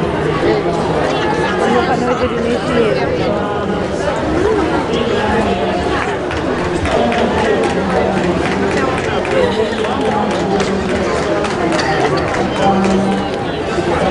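A crowd of people chatter loudly all around.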